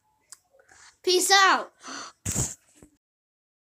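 A young girl cries out loudly close by.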